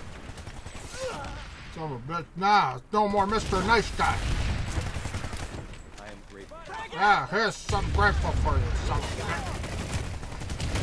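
A man speaks with animation into a microphone, close up.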